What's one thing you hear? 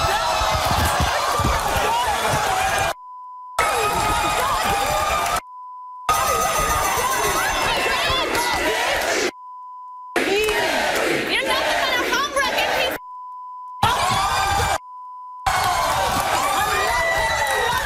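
A studio crowd shouts and cheers loudly.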